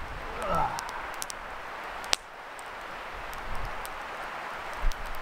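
A small campfire crackles and pops outdoors.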